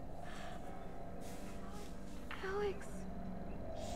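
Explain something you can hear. A young girl cries out in fear.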